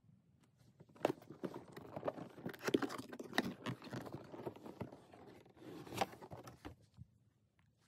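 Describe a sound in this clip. Cardboard packaging scrapes and rustles as it is handled.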